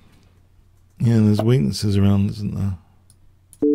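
A man speaks briefly and calmly, close to a microphone.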